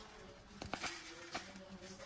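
Sugar pours and patters into a plastic lid.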